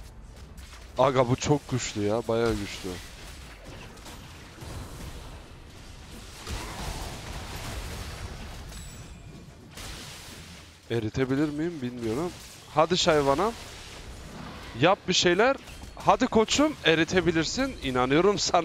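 Magic blasts burst and crackle in a fantasy battle.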